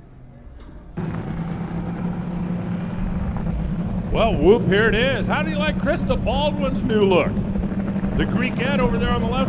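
A drag racing engine roars in the distance.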